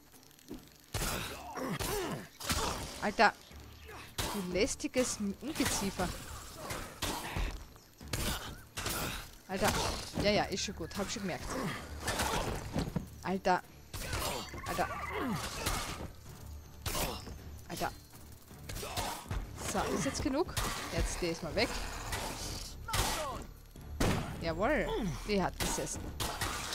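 A blade hacks at a giant spider with sharp blows.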